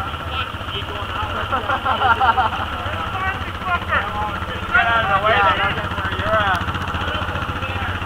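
Men talk to each other outdoors.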